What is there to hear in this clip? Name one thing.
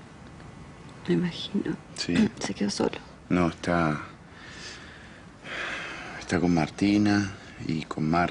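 A young woman speaks quietly and sadly nearby.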